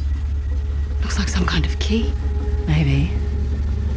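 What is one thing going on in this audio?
A second woman answers in a low voice.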